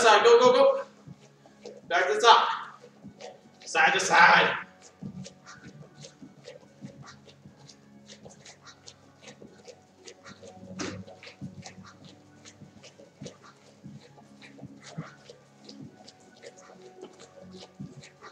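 Bare feet shuffle and tap on a mat.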